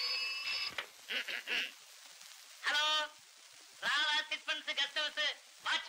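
A man talks cheerfully into a telephone.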